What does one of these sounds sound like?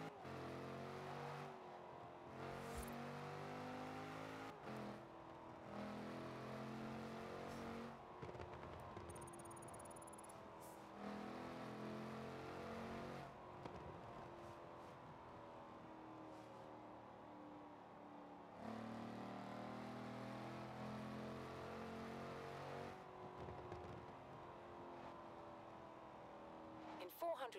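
A car engine roars steadily, rising in pitch and then dropping with each gear change.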